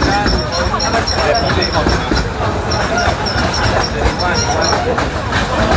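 Several people chatter on the train.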